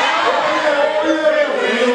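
A young man raps loudly into a microphone.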